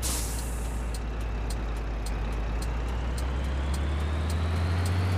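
A turn signal ticks in a quick, even rhythm.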